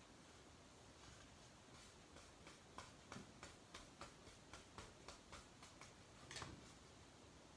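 A paintbrush dabs and taps lightly on a wooden board.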